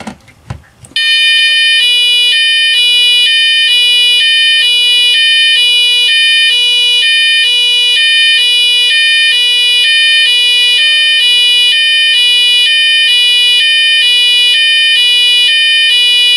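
A fire alarm blares loudly, switching quickly back and forth between a high and a low tone.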